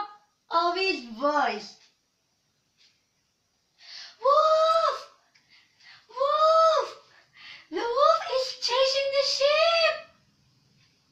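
A young woman sings loudly and close by, in short bursts.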